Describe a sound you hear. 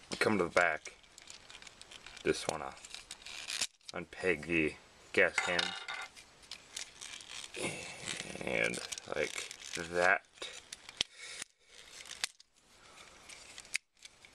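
Plastic toy parts click and rattle as hands twist them.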